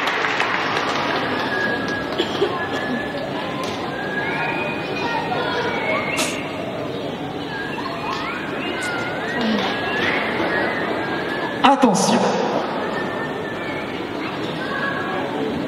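A crowd murmurs and calls out in a large tent.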